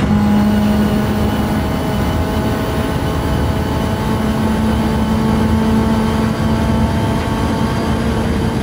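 Tyres hum on the track.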